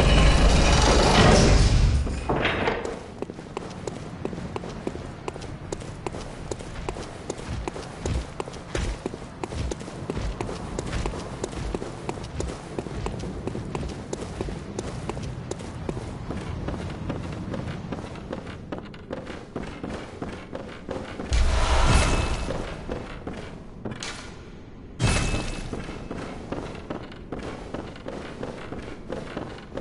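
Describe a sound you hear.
Footsteps tap quickly on hard stone floors.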